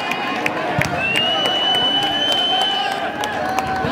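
A referee blows a long whistle blast.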